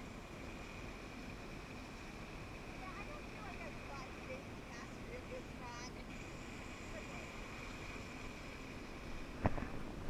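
Water splashes and rushes as a person is pulled through a lake.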